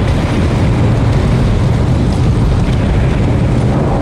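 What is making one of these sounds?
Loose rock and grit scrape and crumble under climbing feet.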